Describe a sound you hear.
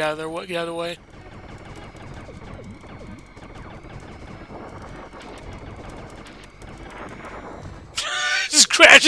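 Laser shots and explosions from a space shooter game ring out quietly.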